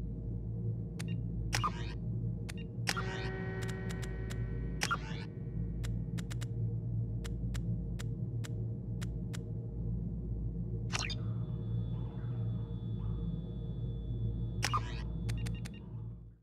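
Short interface clicks and beeps sound now and then.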